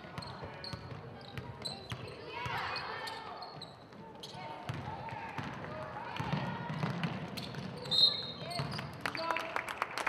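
Young women call out to each other across an echoing gym.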